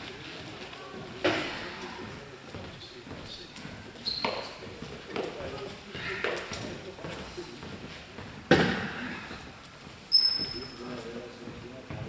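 A table tennis ball knocks sharply against paddles and a table.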